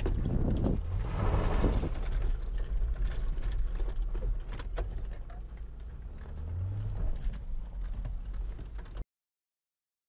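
Tyres rumble on a rough road.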